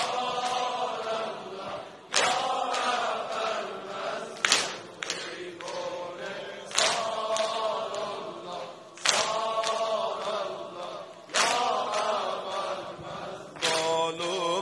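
A large crowd of men chants together in a loud, echoing hall.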